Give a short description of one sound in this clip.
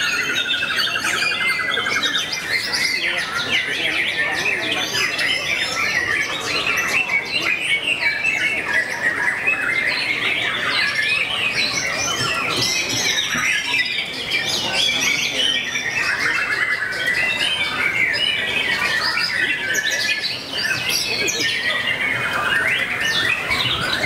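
A songbird sings loud, rapid, chirping trills close by.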